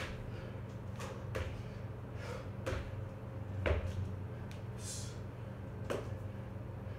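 Feet thump lightly on a wooden floor.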